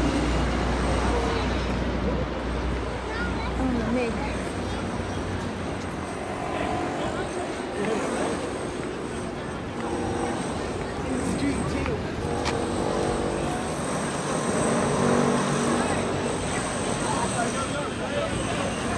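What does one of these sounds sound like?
A crowd of children and adults chatter nearby outdoors.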